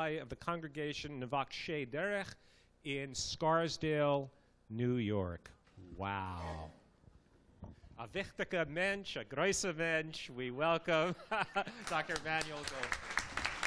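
An older man speaks through a microphone to a hall, reading out with animation.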